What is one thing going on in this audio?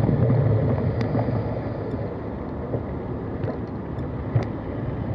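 Bicycle tyres clunk over the joints of a steel ramp.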